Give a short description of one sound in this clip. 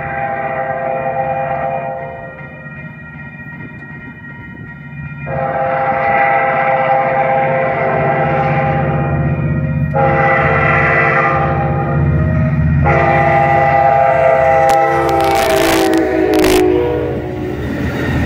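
A train horn blares in long blasts, growing louder as the train nears.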